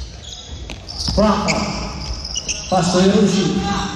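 A basketball bounces on a wooden floor in an echoing hall.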